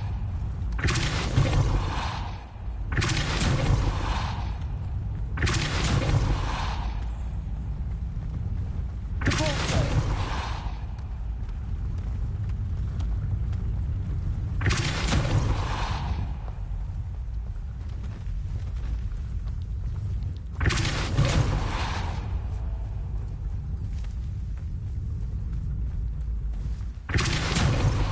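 A magic spell bursts with a loud whooshing hiss, again and again.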